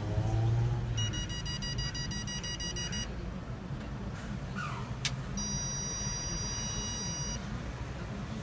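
A toll machine beeps in long steady tones.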